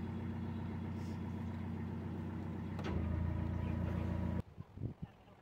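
A boat engine chugs steadily close by.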